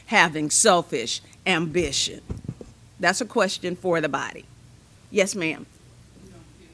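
An elderly woman speaks with feeling into a microphone in an echoing room.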